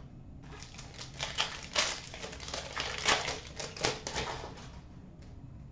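Plastic card wrappers crinkle as hands handle them.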